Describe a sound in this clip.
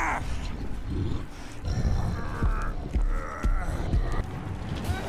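Heavy footsteps thud on the ground.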